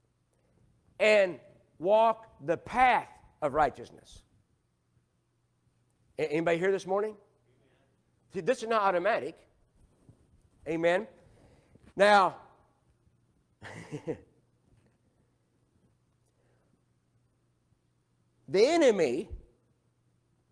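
An older man preaches with animation through a microphone, in bursts and pauses.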